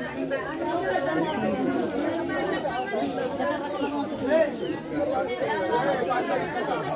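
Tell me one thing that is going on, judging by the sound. A crowd of men and women talk over each other outdoors.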